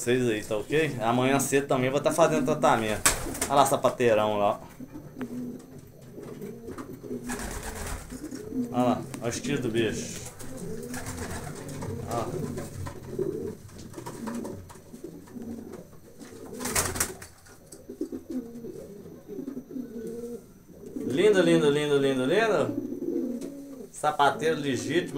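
Pigeons coo softly and steadily.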